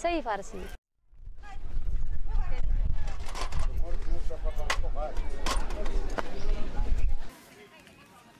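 Women chatter at a busy outdoor market.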